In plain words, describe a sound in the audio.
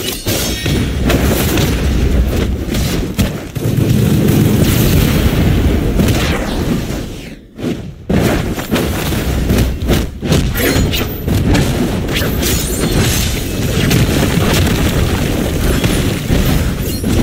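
Sharp hits and whooshing blasts sound again and again in a fast fight.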